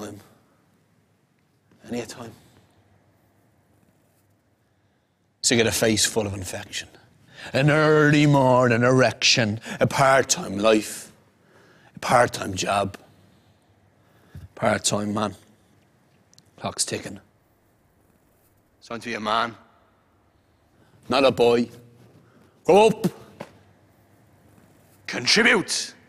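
A man recites a spoken-word poem with pauses between lines.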